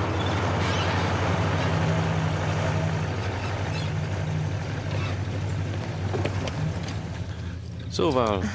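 A car engine rumbles as the car drives slowly closer.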